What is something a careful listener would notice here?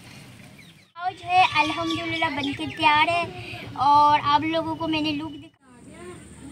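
A young girl speaks close by.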